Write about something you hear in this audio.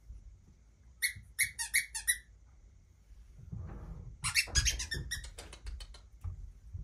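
A puppy yelps and squeals in short, high bursts.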